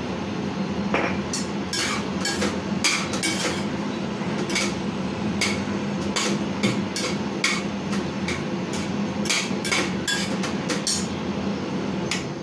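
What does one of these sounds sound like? A spatula scrapes and clanks against a metal pan.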